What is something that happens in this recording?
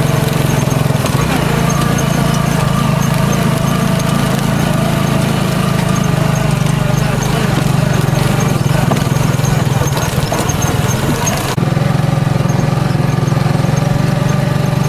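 An engine drones steadily.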